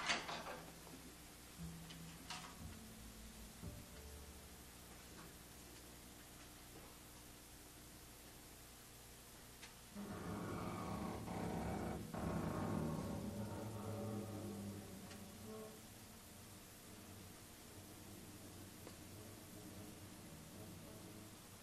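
A double bass plays a plucked walking line.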